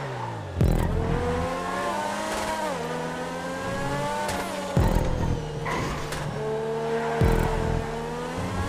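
Tyres screech through tight corners.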